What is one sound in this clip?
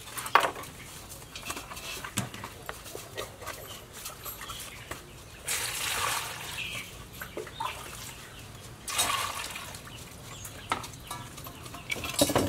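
Fish scrape and rub against a metal bowl.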